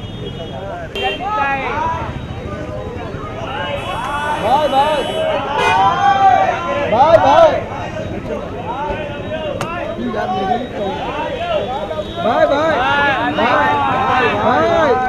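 Several men shout and call out loudly close by.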